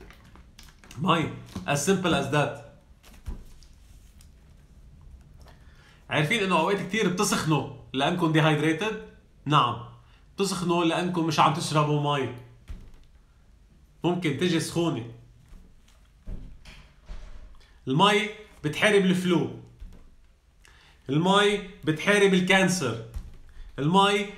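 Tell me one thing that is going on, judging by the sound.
A man talks animatedly, close to the microphone.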